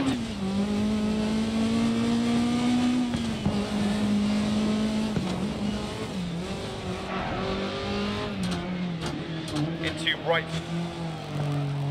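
Tyres crunch and skid on a gravel road.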